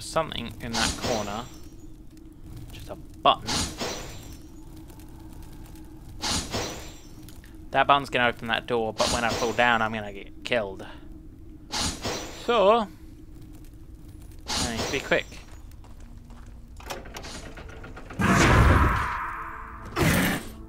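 A magical blast whooshes and roars.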